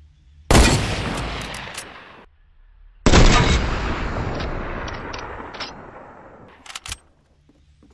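A rifle fires loud shots that boom and echo away.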